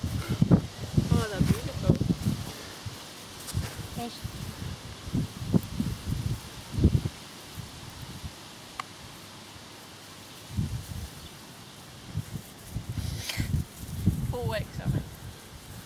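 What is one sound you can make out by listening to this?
Puppies yelp and whimper in short high squeaks.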